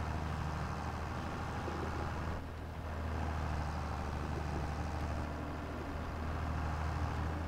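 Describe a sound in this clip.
Tyres roll over rough dirt.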